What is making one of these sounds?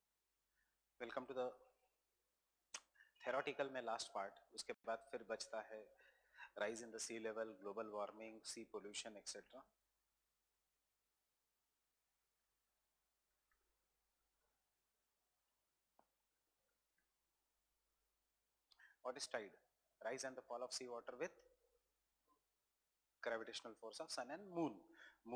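A man speaks calmly into a microphone, lecturing with pauses.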